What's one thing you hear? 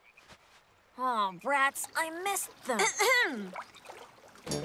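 A young boy talks lazily.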